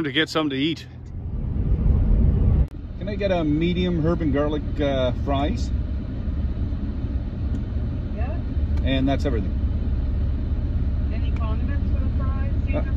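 A car engine rumbles low while driving.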